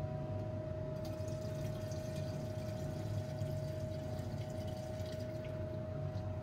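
Liquid pours from a jug into a glass beaker with a splashing hiss.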